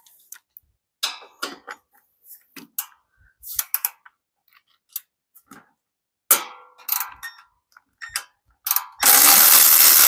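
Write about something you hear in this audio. A ratchet wrench clicks as it turns a bolt.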